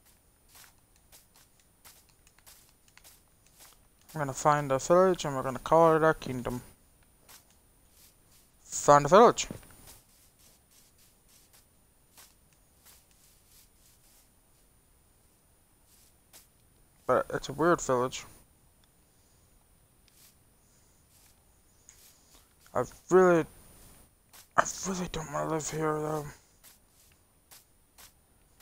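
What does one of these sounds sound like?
Footsteps fall softly on grass.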